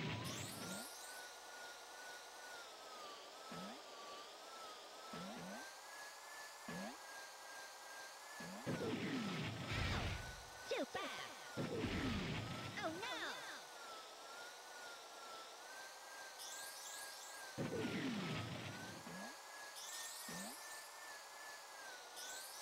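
A small kart engine hums steadily at high pitch, wavering as it speeds up and slows down.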